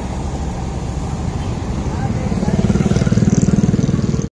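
A motorcycle engine putters close by.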